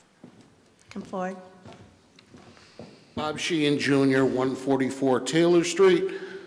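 A middle-aged woman speaks into a microphone, heard through loudspeakers in an echoing hall.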